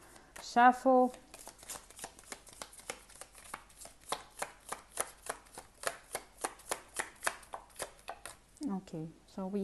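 Cards are shuffled with quick, rapid flicks.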